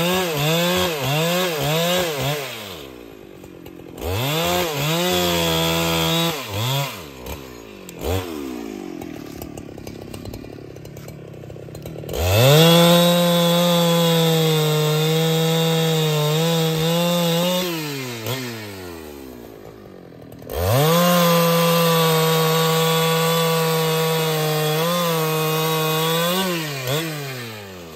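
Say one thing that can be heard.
A chainsaw cuts through a log.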